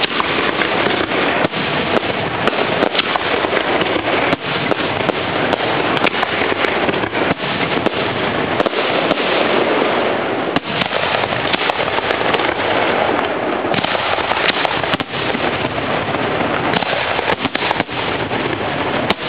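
Fireworks crackle and sizzle without a break.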